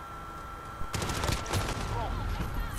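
Gunfire bursts from a video game.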